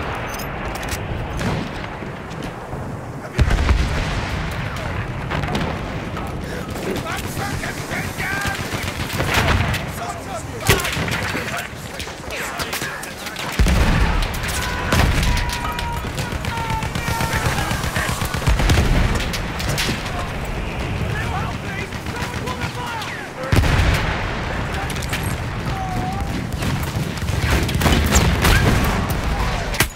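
Rifle shots crack close by.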